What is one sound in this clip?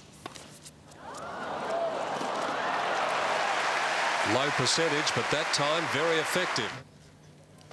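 A crowd applauds and cheers loudly in a large arena.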